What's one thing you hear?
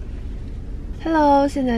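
A young woman speaks briefly, close by.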